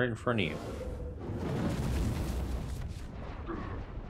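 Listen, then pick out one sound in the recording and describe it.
A fireball explodes with a loud roar.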